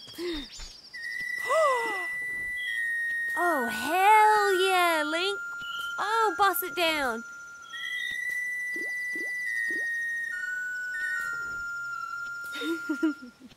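A playful electronic tune plays.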